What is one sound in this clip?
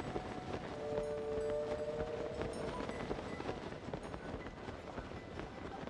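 Wind rushes steadily past during a fast glide through the air.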